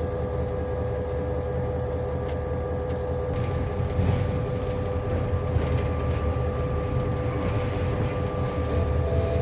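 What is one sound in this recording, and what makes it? A locomotive engine drones steadily from inside its cab.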